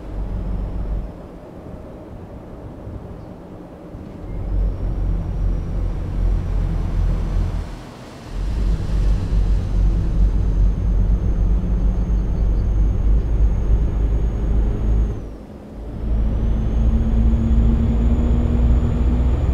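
A truck engine rumbles low and steady while driving on a highway.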